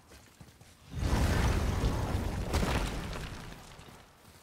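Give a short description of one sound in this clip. A man leaps across a gap with a loud rushing whoosh.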